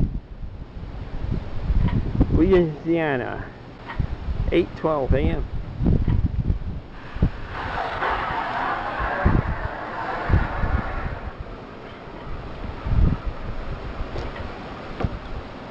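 Wind gusts buffet with low, uneven rumbles outdoors.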